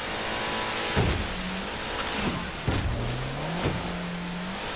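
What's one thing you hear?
A boat hull slaps against waves with heavy thuds.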